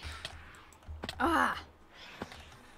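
A young woman speaks close to a microphone.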